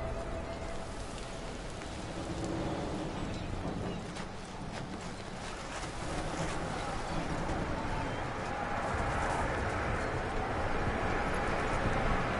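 Small fires crackle and hiss nearby.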